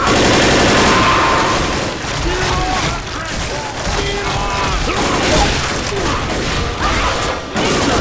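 A monster snarls and growls up close.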